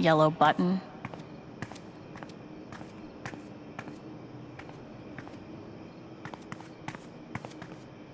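Footsteps tap on hard ground at a walking pace.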